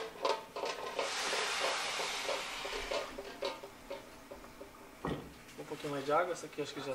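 A stew bubbles and simmers in a pot.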